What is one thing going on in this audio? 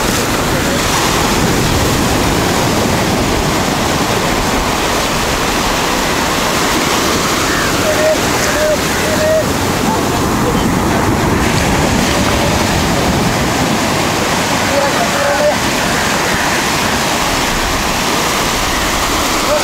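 Waves break and wash steadily up the shore.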